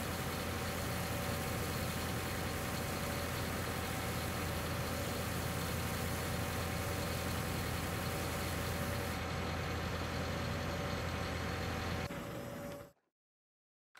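A small diesel engine idles steadily.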